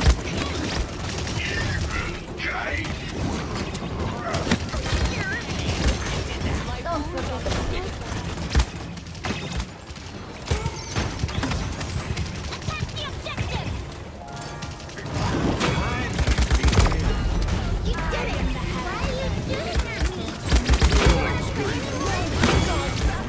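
Gunfire and magic blasts crackle rapidly in a game.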